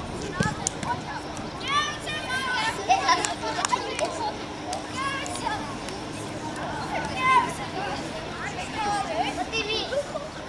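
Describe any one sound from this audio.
Young boys shout and cheer excitedly outdoors.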